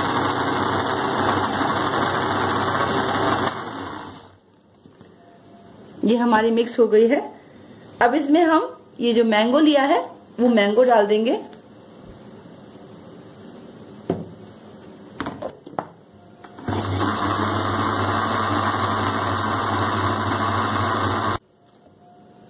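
A mixer grinder whirs loudly and steadily, then stops.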